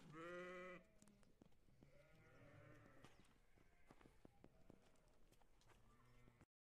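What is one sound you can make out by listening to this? Footsteps and hooves scuff on dry dirt.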